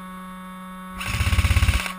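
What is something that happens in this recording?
An airsoft gun fires a rapid burst close by.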